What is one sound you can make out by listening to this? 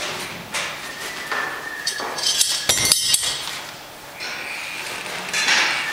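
Metal clinks and rattles as a weight is hooked onto a handle.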